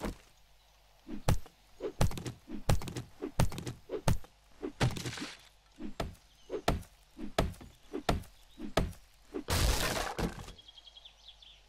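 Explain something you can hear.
A stone axe bashes against cardboard boxes with dull, repeated thuds.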